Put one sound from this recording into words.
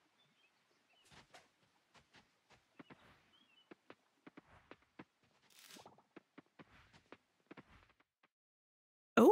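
Light footsteps patter along a path.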